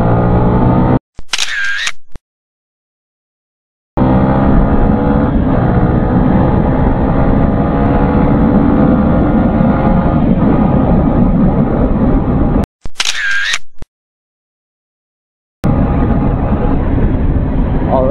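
A motorcycle engine drones close by and rises in pitch as it speeds up.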